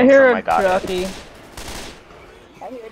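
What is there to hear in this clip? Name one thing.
An automatic rifle fires a burst.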